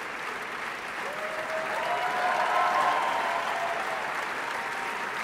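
A crowd cheers and whoops loudly for a moment.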